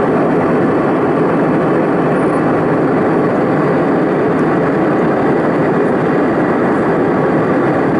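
A jet airliner's engines roar steadily in flight, heard from inside the cabin.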